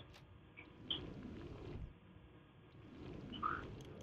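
A magic spell whooshes and shimmers.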